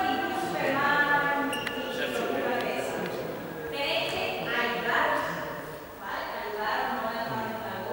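A young woman speaks loudly and with animation in an echoing hall.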